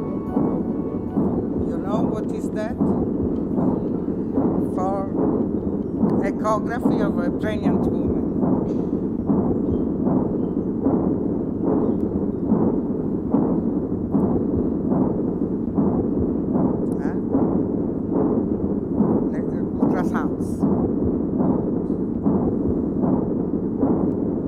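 A middle-aged woman speaks steadily into a microphone through loudspeakers in an echoing room.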